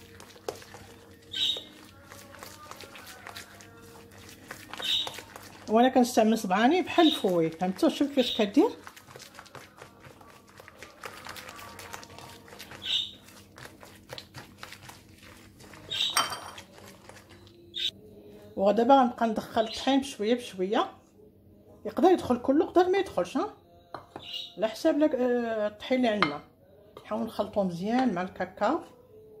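Hands squish and squelch through thick, soft batter in a bowl.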